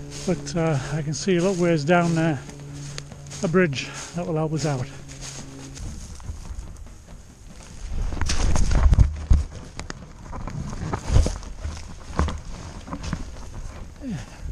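An elderly man talks close to the microphone.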